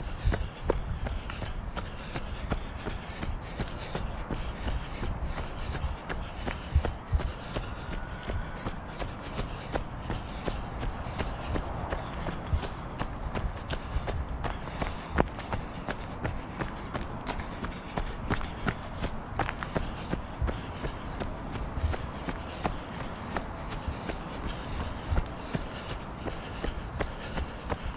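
Footsteps crunch steadily through dry fallen leaves.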